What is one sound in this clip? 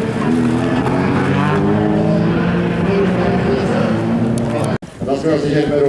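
Racing car engines roar past.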